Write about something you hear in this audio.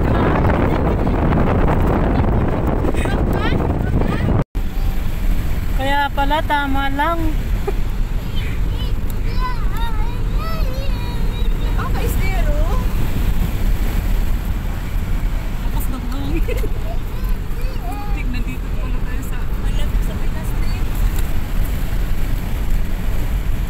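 Tyres hiss and crunch over sand.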